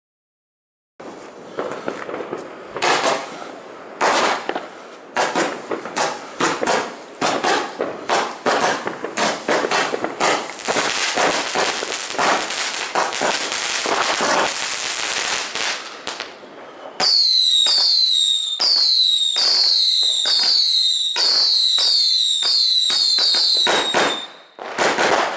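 Fireworks bang and crackle in rapid bursts outdoors.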